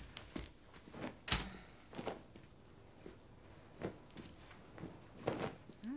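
A woman shakes out a cloth bedspread with a rustle.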